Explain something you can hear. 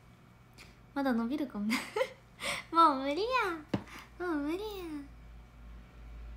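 A young woman laughs brightly close to a microphone.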